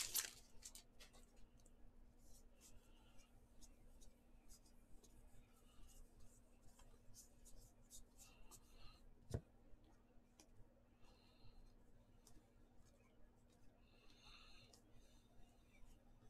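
Trading cards slide and flick softly against one another.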